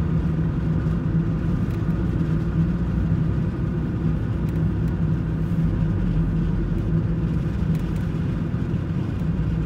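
Tyres roll steadily over smooth pavement.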